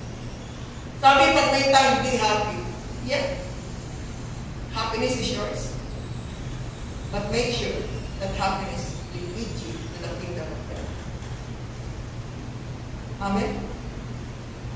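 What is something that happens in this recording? A woman speaks slowly and calmly through a microphone in an echoing hall.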